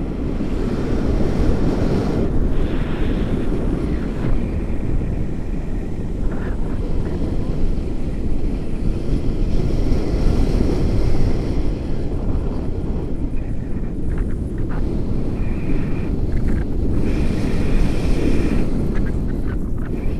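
Strong wind roars and buffets against a microphone throughout.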